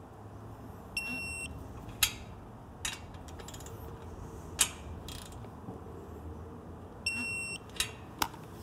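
A digital torque wrench gives a short high beep.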